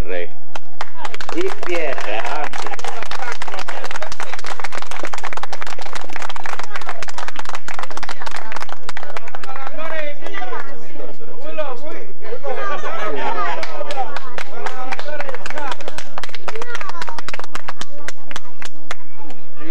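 A crowd applauds with many quick claps.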